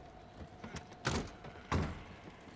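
A wooden door bangs open.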